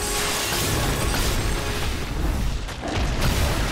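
Heavy blows land with deep booming thuds.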